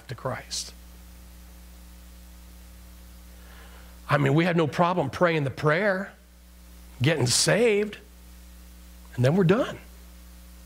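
A middle-aged man speaks with animation through a microphone in a large, echoing room.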